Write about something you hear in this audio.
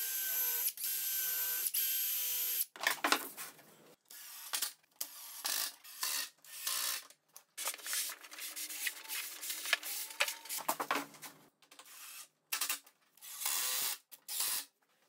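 A cordless drill whirs as it drives a screw.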